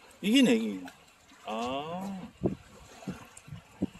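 Shallow water trickles gently over stones.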